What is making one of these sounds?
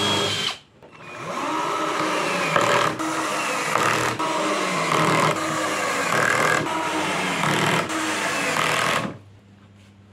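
A cordless drill drives screws into wood in short bursts.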